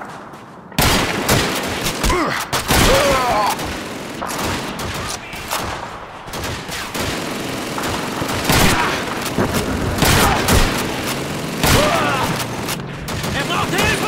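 Gunshots crack loudly again and again.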